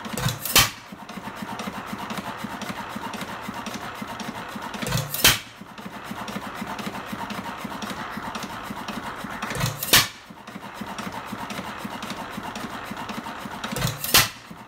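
An old stationary engine fires with a loud bang every few seconds.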